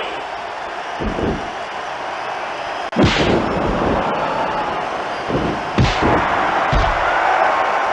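Heavy thuds of bodies hitting a mat ring out several times.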